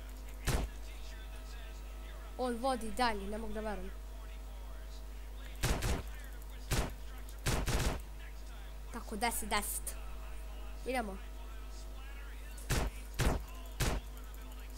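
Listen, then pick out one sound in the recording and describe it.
Gunshots fire in sharp, separate bursts.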